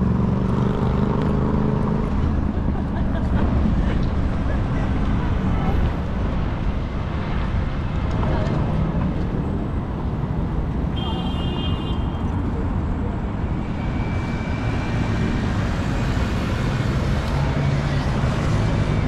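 Traffic rumbles steadily in the open air.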